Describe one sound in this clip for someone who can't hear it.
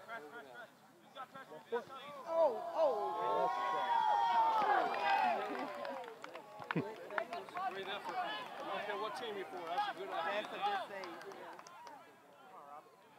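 Young players and spectators shout and cheer loudly outdoors.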